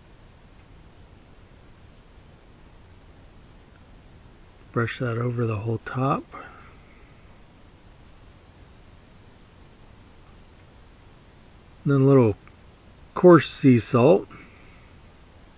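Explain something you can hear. A pastry brush dabs softly on dough.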